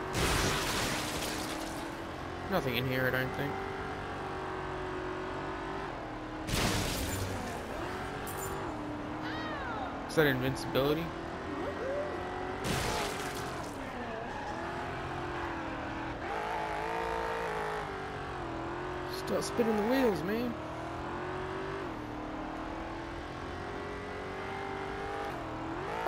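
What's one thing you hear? A car engine roars as the car races along, rising and falling in pitch.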